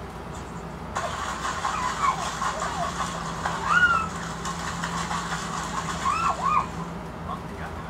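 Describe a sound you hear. Water splashes and rushes through a small laptop speaker.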